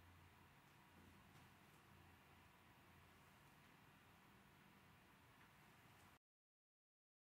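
Electronic dance music plays faintly from a DJ's decks.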